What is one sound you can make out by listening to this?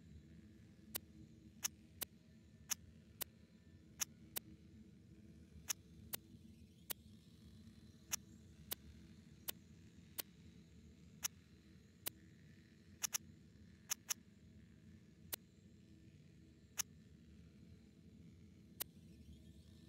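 Short menu clicks tick as a game's inventory list scrolls item by item.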